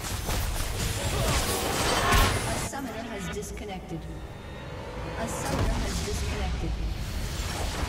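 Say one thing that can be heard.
Game spell effects whoosh and crackle loudly.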